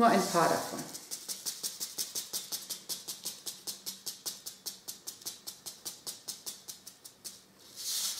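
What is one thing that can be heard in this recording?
Seeds patter from a shaken paper packet onto a plate.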